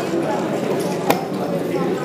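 A game clock button is pressed with a sharp click.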